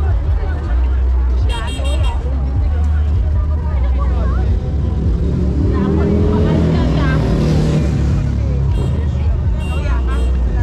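A large crowd chatters outdoors all around.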